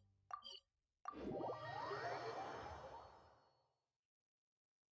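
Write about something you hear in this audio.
A shimmering magical whoosh swells and slowly fades away.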